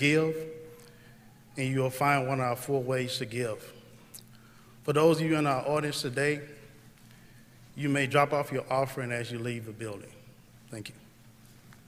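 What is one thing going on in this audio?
A man speaks calmly into a microphone, in pauses.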